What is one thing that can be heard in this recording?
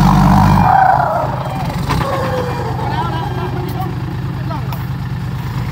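A heavy truck's diesel engine roars and strains under load.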